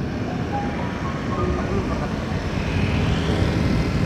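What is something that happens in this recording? Another motorcycle passes close by.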